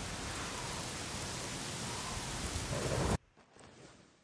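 Wind rushes steadily through trees, then cuts off abruptly.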